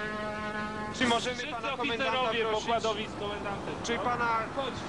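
A man speaks outdoors in the wind.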